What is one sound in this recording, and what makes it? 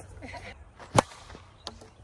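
A plastic bat hits a ball with a sharp crack.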